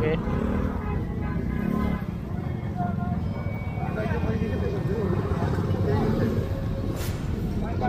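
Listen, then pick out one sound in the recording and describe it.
A motorcycle engine putters past nearby.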